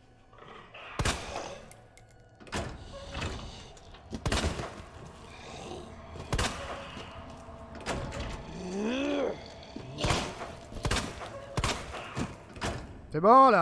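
Gunshots fire loudly, one after another.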